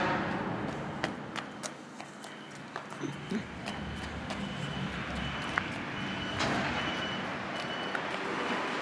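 Small footsteps patter on paving stones.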